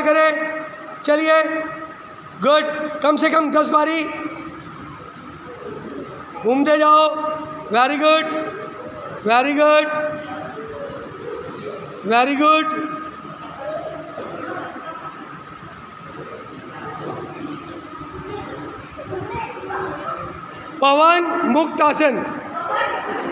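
A group of children loudly call out counts together in short bursts.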